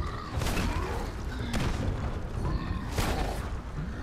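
Rocks and rubble crash and scatter.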